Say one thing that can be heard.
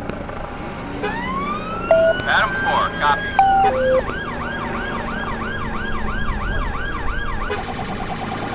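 A police siren wails and whoops.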